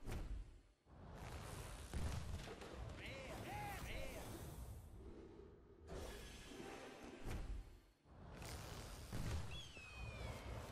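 A card pack bursts open with a crash and magical whooshes.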